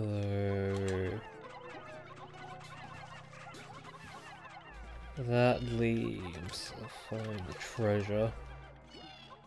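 Small creatures squeak and chatter in quick high cries.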